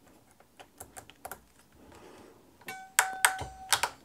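A crimping tool clicks as it squeezes a wire end.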